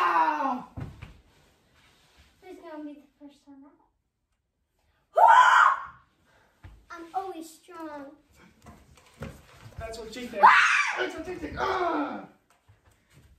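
A young child shouts and squeals excitedly nearby.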